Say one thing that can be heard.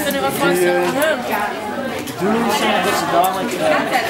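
A crowd of young people chatter and talk over one another.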